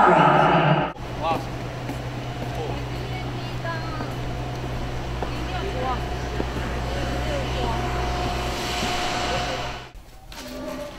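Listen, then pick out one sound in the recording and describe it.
Young women chatter and laugh nearby.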